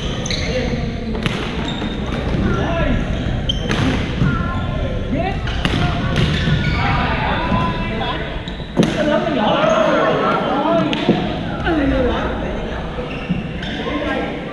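Shoes squeak on a hard floor.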